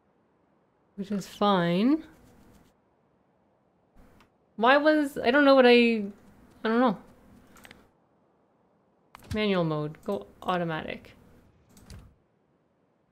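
A young woman talks calmly into a close microphone, in short bursts.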